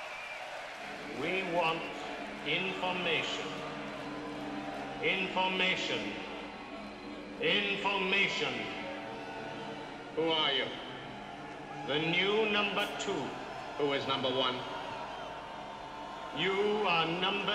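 A large crowd of men and women sings a melody together in repeated loud waves.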